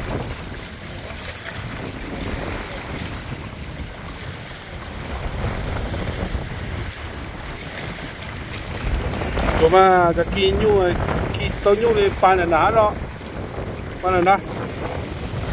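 Small waves lap against rocks.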